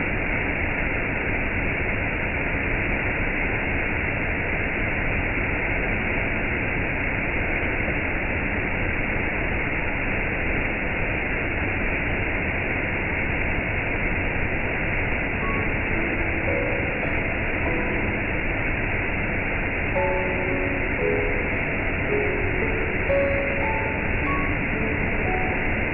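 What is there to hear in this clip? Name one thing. A waterfall rushes and splashes steadily over rocks.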